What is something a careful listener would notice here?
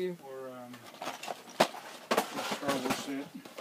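A cardboard box rattles as it is shaken.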